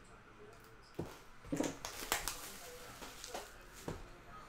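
Plastic wrapping crinkles and rustles as a box is opened.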